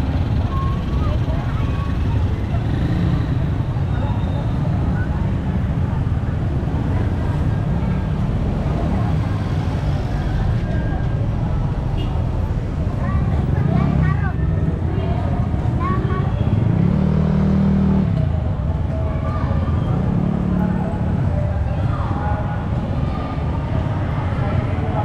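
People chatter in the distance.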